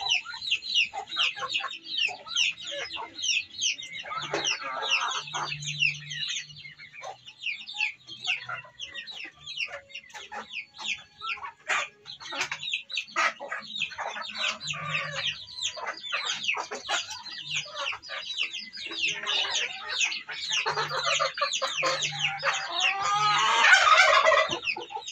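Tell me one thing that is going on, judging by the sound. Chicks peep and cheep busily close by.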